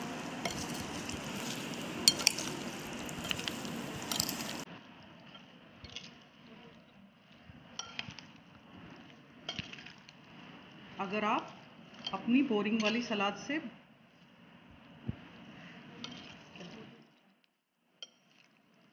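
A spoon stirs a moist salad in a glass bowl, squelching and clinking against the glass.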